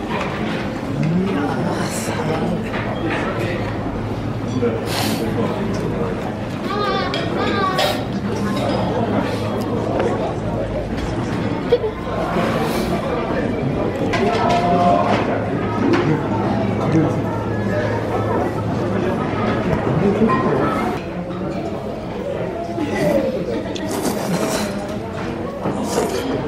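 A crowd of men and women chatters in a busy indoor hall.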